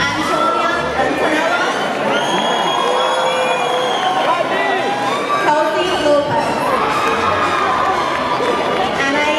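A large crowd of young people chatters and cheers loudly in a big echoing hall.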